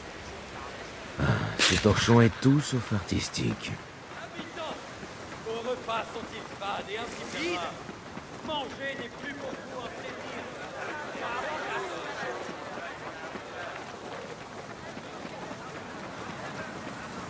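Footsteps run quickly over sandy ground.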